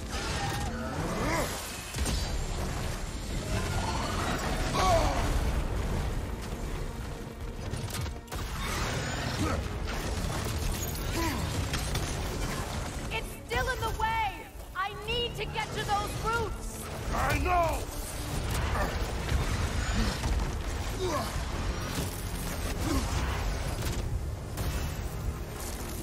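Blasts of ice whoosh and crackle during a fight.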